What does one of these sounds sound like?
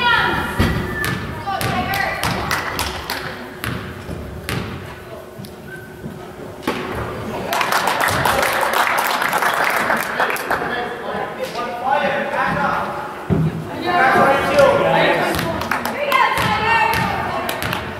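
Spectators talk nearby in a crowd of men and women.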